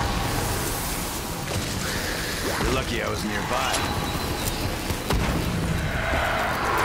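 Electric energy crackles and hums.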